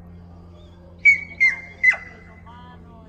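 A man gives three short, sharp whistles to a dog, close by outdoors.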